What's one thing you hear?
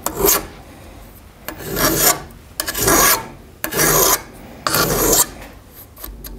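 A metal file rasps against a saw chain in short, quick strokes.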